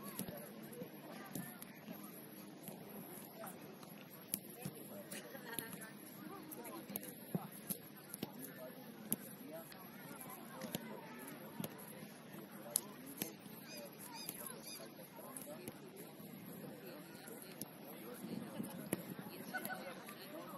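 A football is kicked with sharp thuds across grass.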